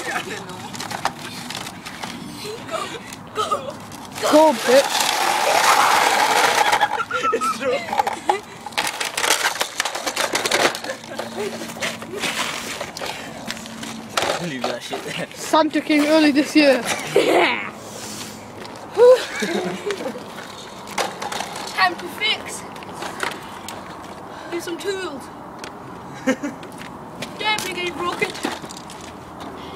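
Young men talk and laugh loudly nearby.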